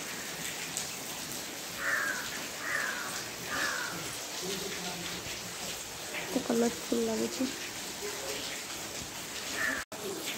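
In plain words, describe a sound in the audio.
Steady rain falls and patters outdoors.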